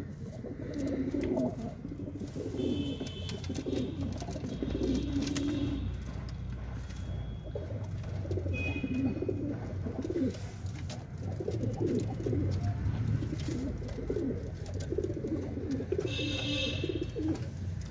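Pigeons flutter and scratch on wooden perches.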